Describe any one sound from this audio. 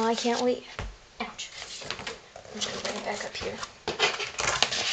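A plastic mailer crinkles and rustles.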